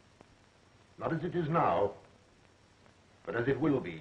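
A man speaks urgently in a slightly different voice.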